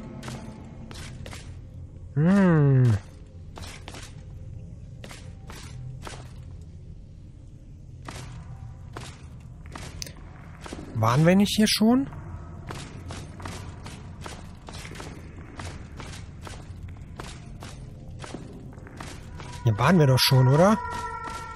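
Footsteps scuff steadily on a stone floor.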